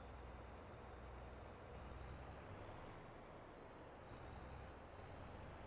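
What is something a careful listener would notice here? A combine harvester's engine rumbles steadily.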